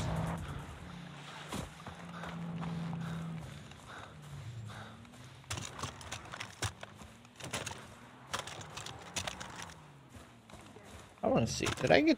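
Footsteps crunch on dirt ground.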